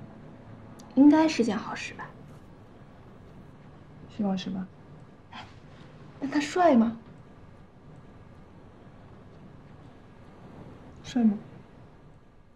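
A young woman speaks in short, calm phrases close by.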